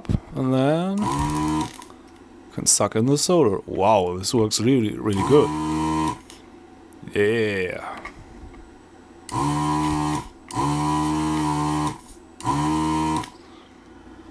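A desoldering gun's vacuum pump buzzes in short bursts.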